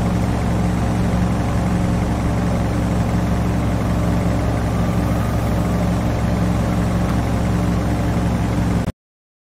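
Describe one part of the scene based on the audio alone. Rockets hiss from a vehicle's boosters.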